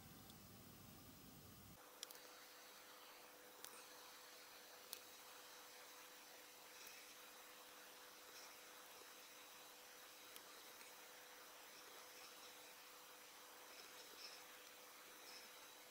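A brush dabs softly against a small part.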